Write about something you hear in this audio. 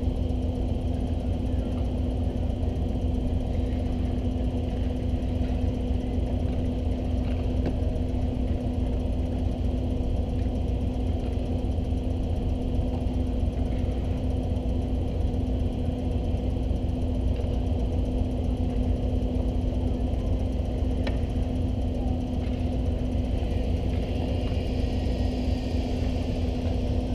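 Ice skates scrape and carve across ice.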